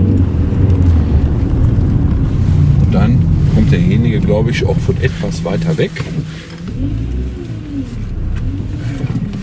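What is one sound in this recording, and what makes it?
Tyres rumble on a wet road.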